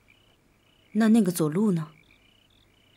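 A young man asks a short question calmly.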